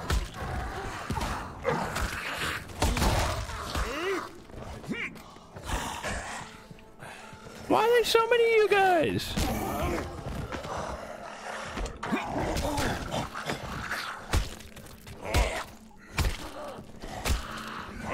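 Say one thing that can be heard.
Melee blows thud and crunch against bodies.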